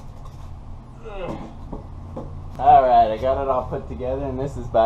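A man talks casually close by.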